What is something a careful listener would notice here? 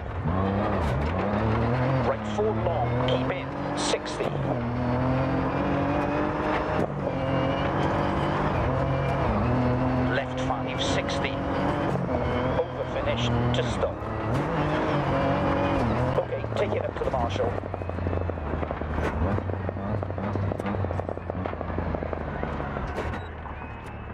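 Gravel crackles and pings under the tyres.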